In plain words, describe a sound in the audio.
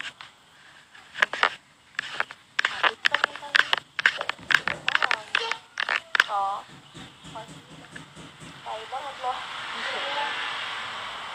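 A young woman speaks softly, close to a phone's microphone.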